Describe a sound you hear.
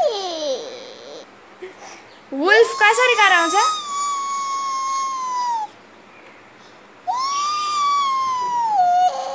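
A toddler sings long, high notes close by.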